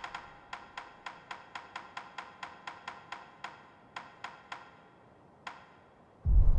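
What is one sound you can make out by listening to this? Short menu clicks tick rapidly, one after another.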